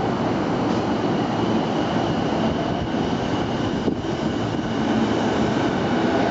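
Train wheels rumble over the rails as the train picks up speed.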